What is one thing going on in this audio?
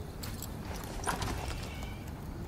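A wooden door swings open with a creak.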